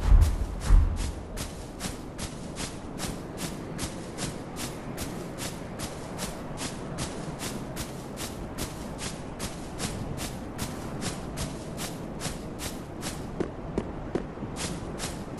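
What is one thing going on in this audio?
Armored footsteps run steadily over the ground.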